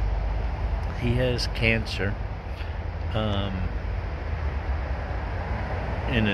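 A middle-aged man speaks in short, calm phrases close by.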